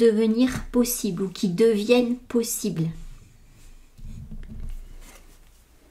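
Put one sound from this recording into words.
Cards slide softly across a table.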